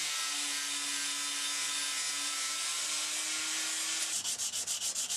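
An angle grinder whines loudly as it grinds steel.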